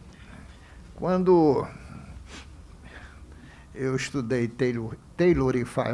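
A man speaks into a microphone in short, measured phrases.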